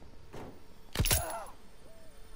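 A suppressed gun fires a single muffled shot.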